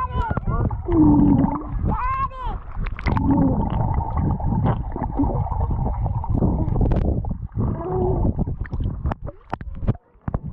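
Water rushes and bubbles, heard muffled underwater.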